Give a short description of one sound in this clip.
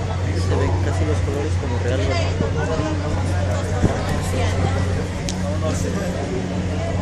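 A crowd of men and women chatter nearby, with many voices overlapping.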